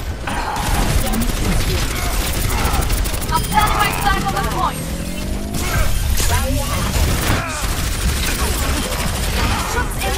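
Explosions and impacts boom in a video game battle.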